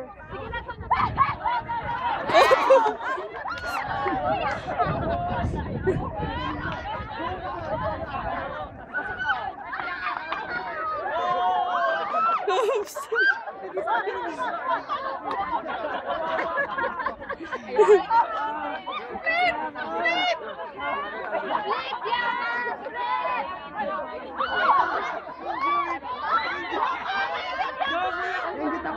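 A crowd of young people chatter, shout and laugh outdoors.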